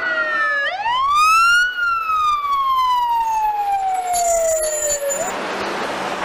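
A fire engine's siren wails, rising and falling.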